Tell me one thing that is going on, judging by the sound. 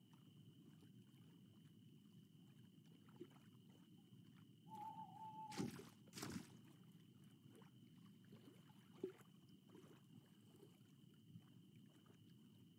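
Water laps gently and steadily.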